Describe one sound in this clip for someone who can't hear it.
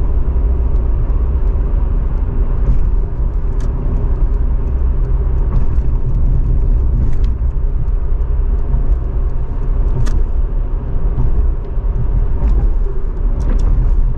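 Tyres roar low and steady on a smooth road.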